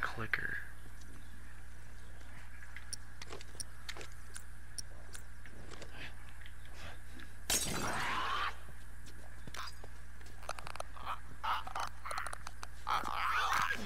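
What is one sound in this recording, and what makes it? Footsteps scuff quickly on hard ground.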